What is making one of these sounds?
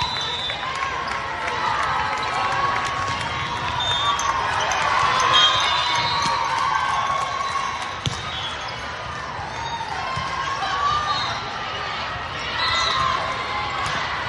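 A volleyball thumps as players strike it.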